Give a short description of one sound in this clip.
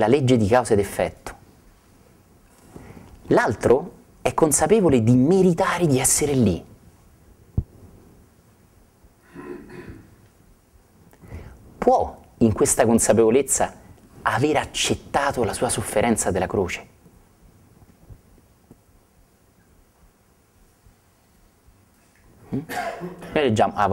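A middle-aged man speaks calmly and warmly into a clip-on microphone, in pauses.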